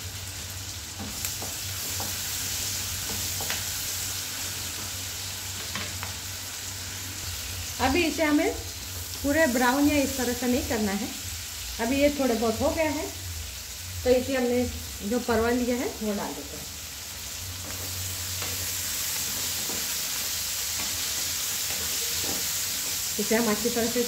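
Food sizzles steadily in a hot pan.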